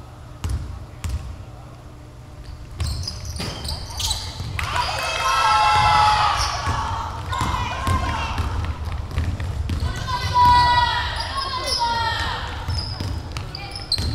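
A basketball bounces with dull thuds in an echoing hall.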